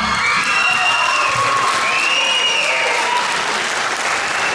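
A chorus of children sings out a final high note in a large hall.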